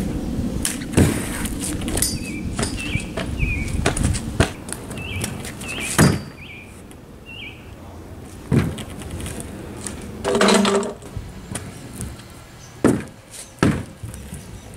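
A scooter clatters and bangs against a wooden board.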